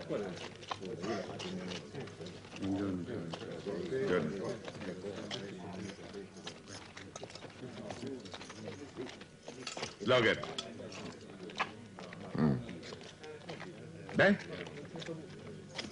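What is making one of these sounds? A crowd of men and women chatters and murmurs nearby.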